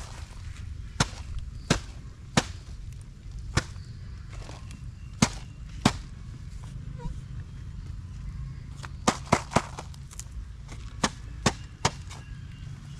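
Plastic containers knock and clack against each other.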